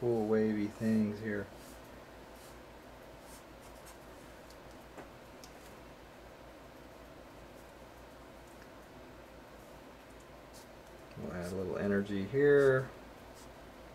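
A felt marker squeaks and scratches across paper.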